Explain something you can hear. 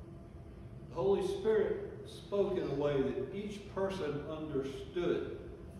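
An elderly man preaches with animation through a microphone in an echoing hall.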